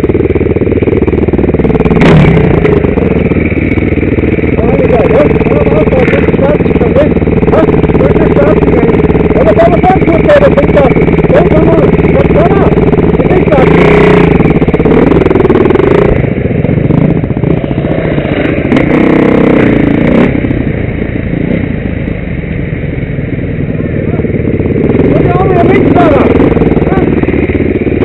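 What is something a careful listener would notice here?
A dirt bike engine roars and revs up close.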